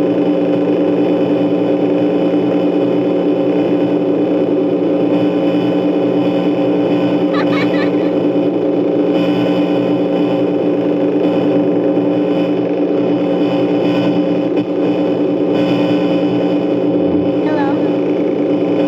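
Electronic static hisses and crackles steadily.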